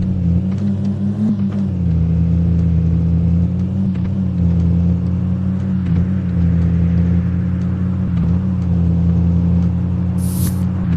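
A car engine hums steadily and revs as the car speeds up.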